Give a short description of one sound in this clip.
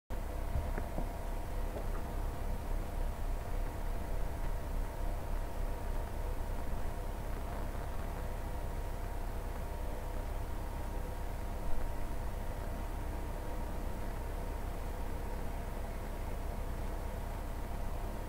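An older man speaks calmly into a computer microphone.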